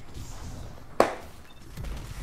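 A loud blast goes off in a video game.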